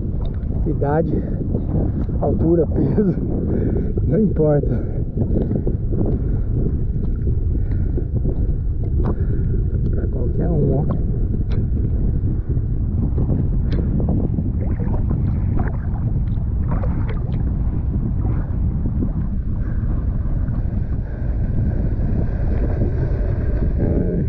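Water splashes and laps nearby.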